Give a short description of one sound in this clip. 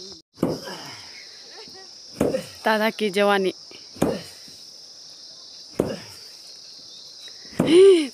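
A stick thuds heavily on a ground covered in dry pods.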